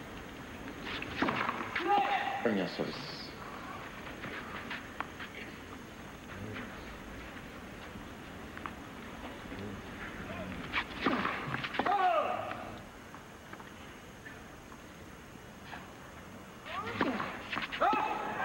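A tennis ball is struck sharply back and forth by rackets.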